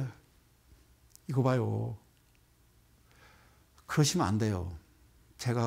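A middle-aged man speaks calmly into a microphone, close up, in short phrases.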